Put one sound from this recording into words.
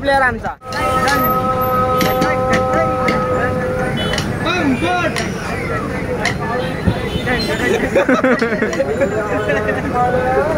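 Drumsticks tap and click together.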